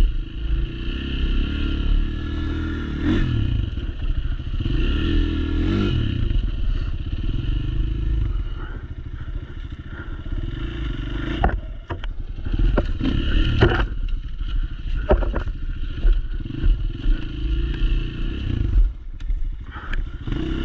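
A dirt bike engine hums and revs steadily up close.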